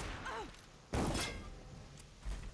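A sharp impact hits close by.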